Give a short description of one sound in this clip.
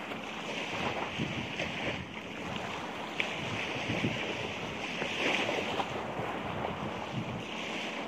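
Waves wash gently onto a shore nearby.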